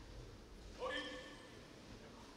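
A fencer lets out a loud, sharp shout that echoes in a large hall.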